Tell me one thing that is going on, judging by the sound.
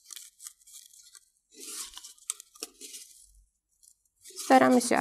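Small plastic objects rustle and click in a woman's hands.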